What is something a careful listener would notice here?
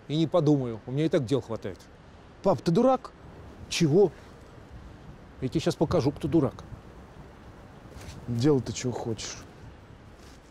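A middle-aged man speaks firmly, close by.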